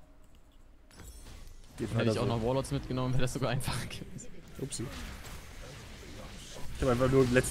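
Game sounds of fighting play from about halfway through.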